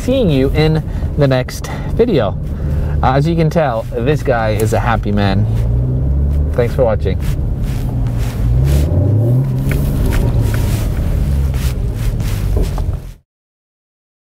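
A car engine hums and revs inside the cabin.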